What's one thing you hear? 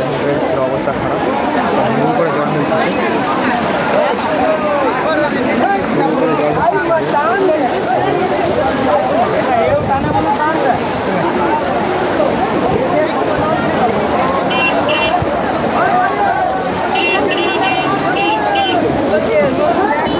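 A crowd of men talk and shout outdoors all around.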